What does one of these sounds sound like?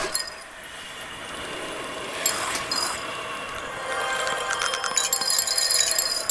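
Soft ambient game music plays steadily.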